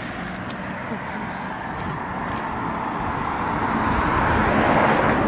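Wind blows outdoors, rumbling steadily and growing stronger.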